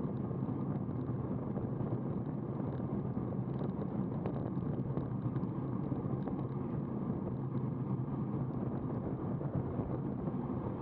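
Wind rushes loudly past, as if heard while riding fast outdoors.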